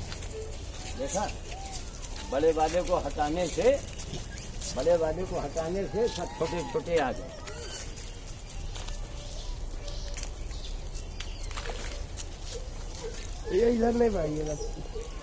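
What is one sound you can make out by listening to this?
An elderly man calls out nearby.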